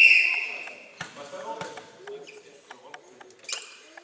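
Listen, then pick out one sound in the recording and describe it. A volleyball is struck with hard slaps.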